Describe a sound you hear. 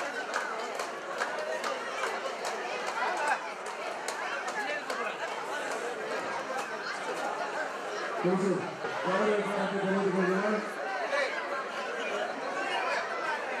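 A large crowd chatters and calls out all around.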